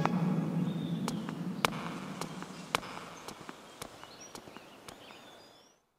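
Footsteps tap steadily on stone, fading into the distance.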